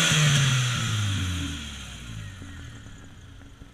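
A car engine revs high and winds down.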